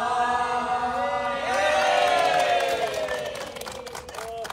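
A group of men and women cheer and shout together outdoors.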